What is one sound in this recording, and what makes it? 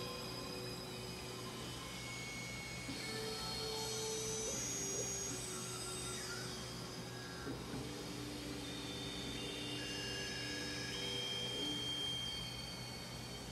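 A synthesizer plays sustained, overlapping chords with soft electronic tones.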